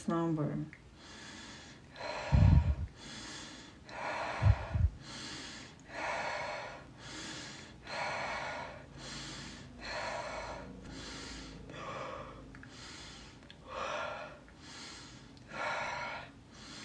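A young woman whispers softly and slowly, very close to a microphone.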